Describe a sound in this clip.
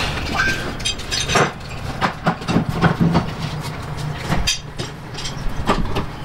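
Metal parts clink and knock.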